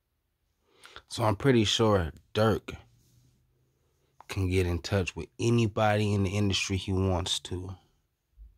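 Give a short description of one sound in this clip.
A young man speaks close by with animation.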